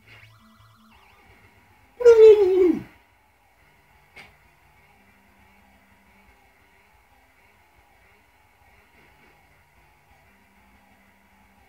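Chiptune video game music plays with simple beeping tones.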